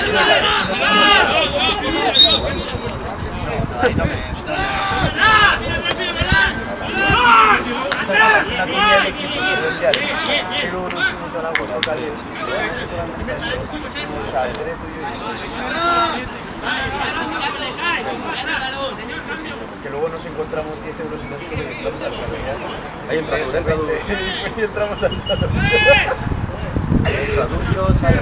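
Men shout and call out across an open field outdoors.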